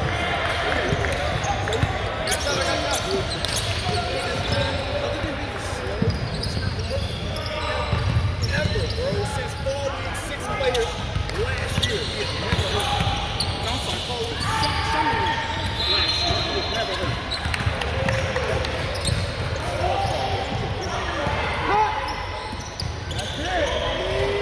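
Many voices chatter and call out in a large echoing gym.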